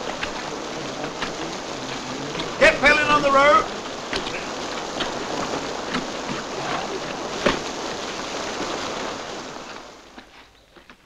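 Rain and wind rush steadily outdoors.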